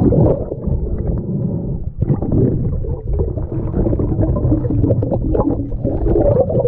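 Water rumbles and gurgles, muffled, all around underwater.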